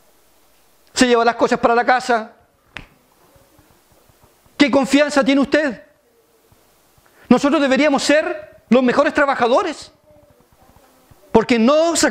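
A middle-aged man speaks with animation into a microphone, in bursts with pauses.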